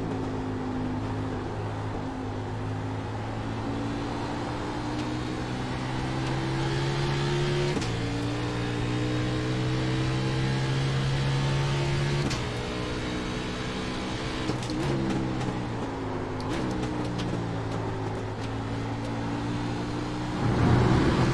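A race car engine roars steadily, its pitch climbing through the gears and dropping at each shift.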